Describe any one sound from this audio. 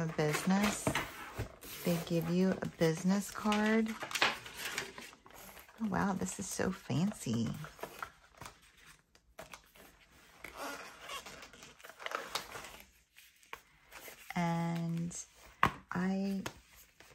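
Paper and plastic sleeves rustle and crinkle.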